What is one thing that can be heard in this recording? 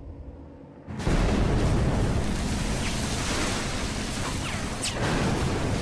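Rough sea waves surge and crash loudly.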